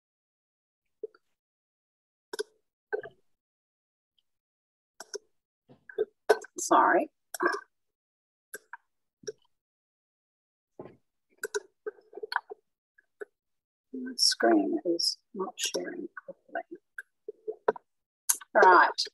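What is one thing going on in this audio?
An older woman speaks haltingly over an online call.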